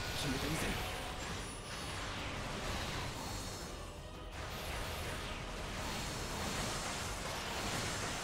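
Beams fire and roar in a loud, dense barrage.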